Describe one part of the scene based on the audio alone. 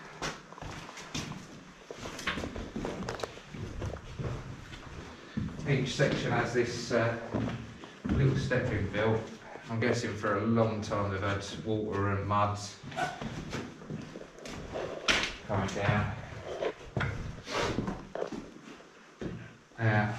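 Footsteps crunch on gritty ground in an echoing tunnel.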